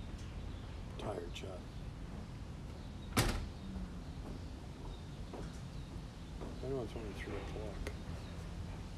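An elderly man speaks briefly and calmly, close by.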